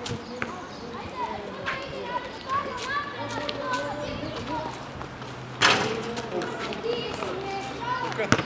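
A basketball bounces with sharp thuds on a hard outdoor court.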